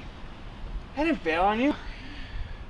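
A young man speaks calmly close up.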